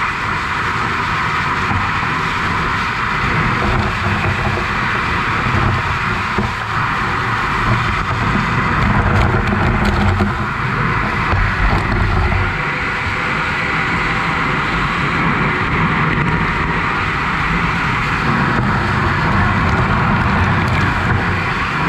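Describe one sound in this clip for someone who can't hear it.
Water splashes and patters on surfaces nearby.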